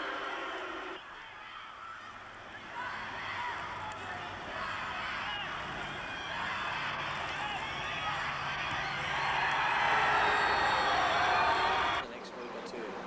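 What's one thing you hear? A large crowd cheers and roars in a stadium, swelling louder.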